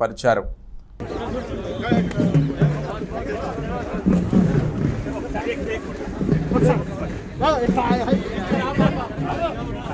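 A crowd of men chatter and shout close by.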